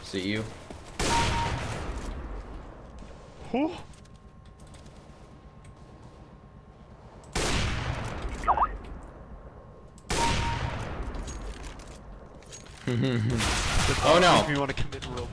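A sniper rifle fires loud, booming shots that ring out and fade.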